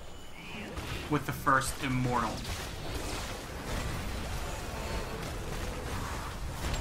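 Magical blasts whoosh and crackle in a fast fantasy battle.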